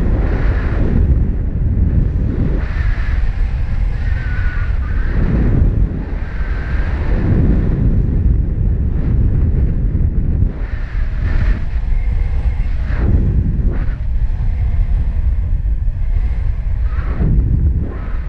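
Wind rushes and buffets hard past the microphone in flight.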